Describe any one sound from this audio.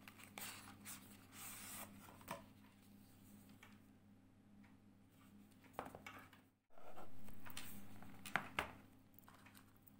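Hands handle and slide a cardboard box, with soft scraping and rustling.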